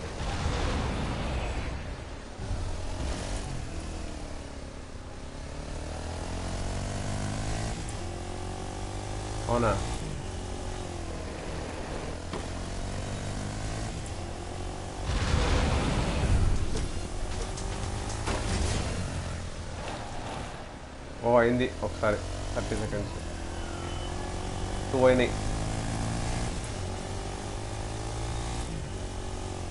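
A quad bike engine hums steadily, rising and falling in pitch as it drives.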